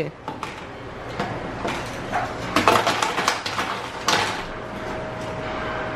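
Ice cubes crack and clatter out of a plastic tray.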